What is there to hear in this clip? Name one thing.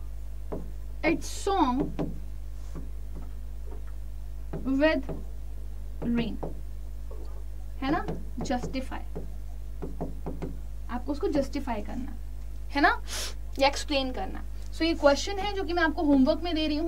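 A young woman speaks calmly and clearly into a nearby microphone, pausing often.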